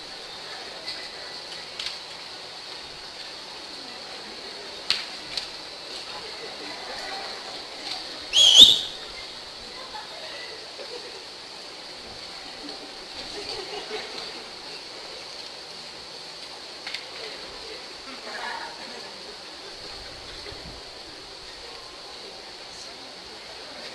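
An audience murmurs and chatters faintly.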